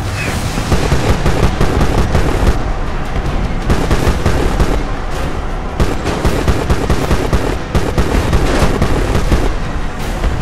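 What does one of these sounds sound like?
A helicopter rotor thumps.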